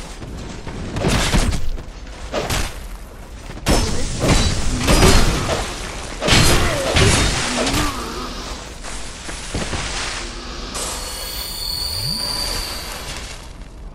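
Swords clash and slash in combat.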